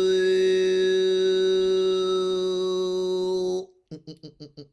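A man sings a long steady tone through a call microphone.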